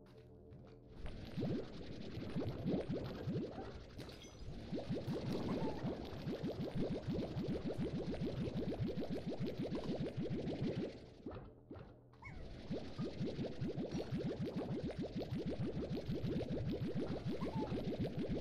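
Small objects pop rapidly as they are sucked up.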